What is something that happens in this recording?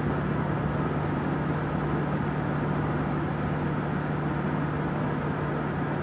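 Tyres roar steadily on a road.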